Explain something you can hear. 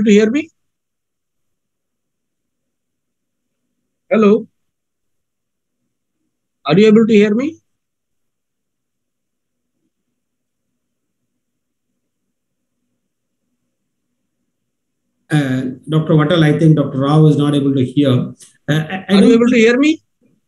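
A man speaks over an online call in short bursts with long pauses.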